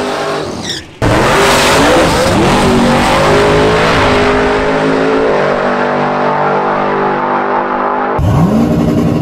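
A car engine roars as a car speeds away into the distance.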